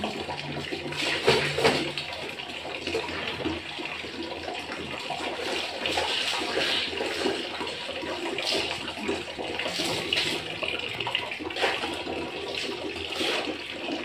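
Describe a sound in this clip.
Water drips and splatters onto a tiled floor.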